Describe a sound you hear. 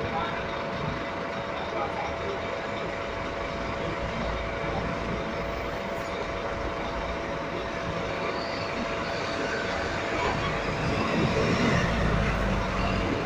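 A bus engine idles nearby with a steady low rumble.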